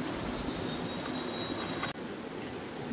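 A hoe scrapes into dry soil.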